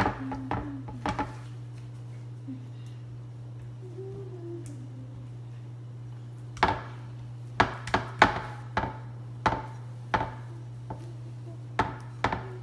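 A metal pan knocks and rattles.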